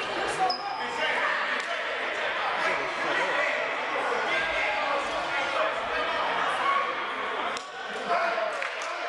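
Basketball shoes squeak on a wooden court.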